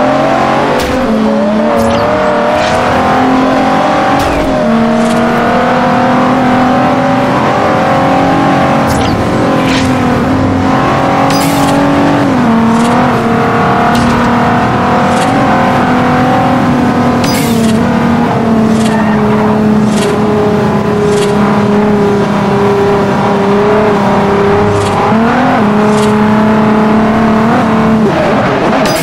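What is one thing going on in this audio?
A sports car engine roars at high speed, its pitch dropping briefly at each gear change.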